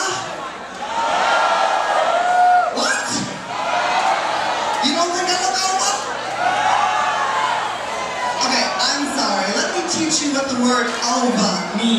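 A crowd cheers and screams loudly.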